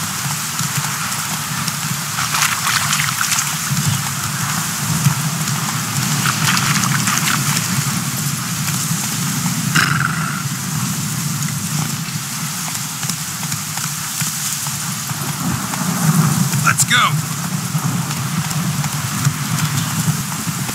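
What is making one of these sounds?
Horse hooves thud steadily on a dirt path at a gallop.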